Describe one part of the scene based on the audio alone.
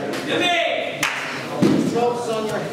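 A body thuds onto a mat.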